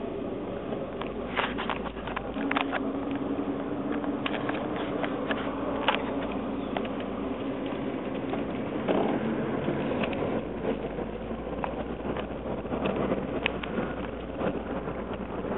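A phone bumps and taps with small clicks.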